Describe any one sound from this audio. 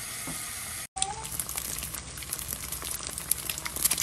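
Eggs sizzle in a frying pan.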